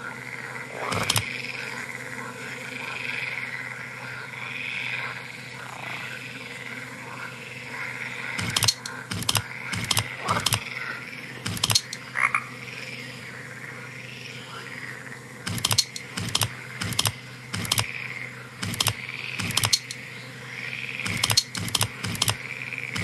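Wooden tiles click and knock as they turn.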